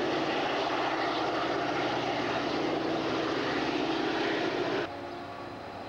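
A freight train rumbles past close by, wheels clattering on the rails.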